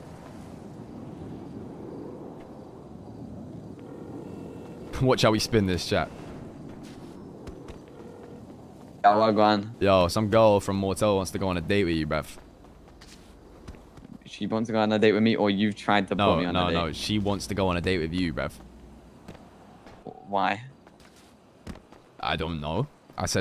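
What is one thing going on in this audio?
Footsteps patter quickly across a hard rooftop.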